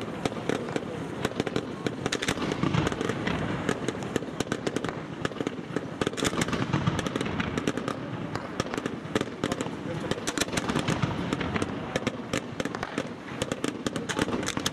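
Fireworks bang and rumble with low booms.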